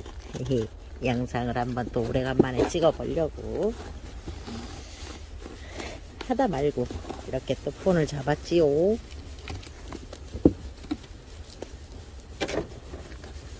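A plastic pot scrapes and rustles on gravel as it is handled.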